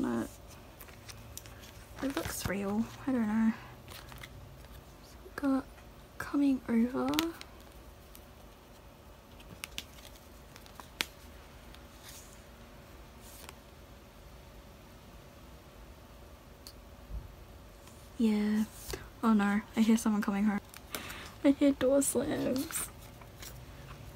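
Plastic card sleeves crinkle and rustle close by.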